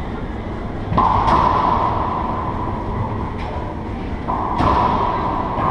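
A racquet smacks a ball with a sharp crack that echoes around a hard-walled room.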